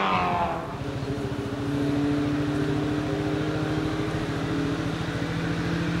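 A distant car engine hums steadily.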